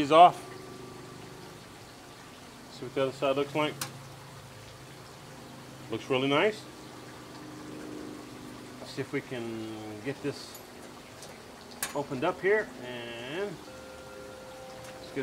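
Meat sizzles softly on a hot grill.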